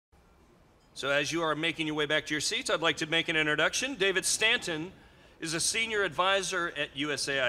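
A middle-aged man speaks calmly into a microphone over a loudspeaker system.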